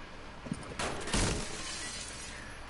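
A wooden barricade smashes and glass shatters with a loud crash.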